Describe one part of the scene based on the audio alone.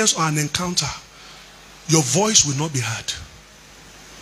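A man speaks forcefully through a microphone.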